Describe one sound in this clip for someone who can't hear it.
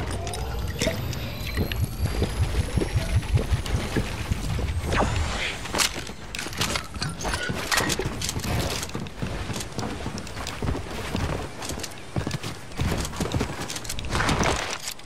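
Game building pieces snap into place in quick clicks and thuds.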